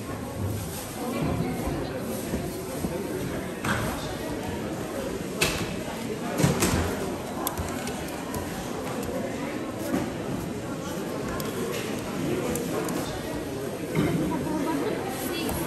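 A busy crowd murmurs and chatters all around.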